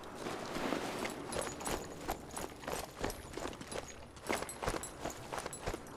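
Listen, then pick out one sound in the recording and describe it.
Footsteps run quickly on a stone path.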